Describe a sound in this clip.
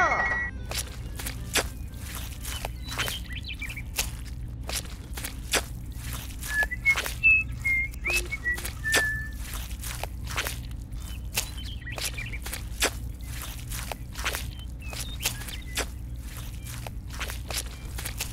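A small spoon taps and scrapes through wet cement.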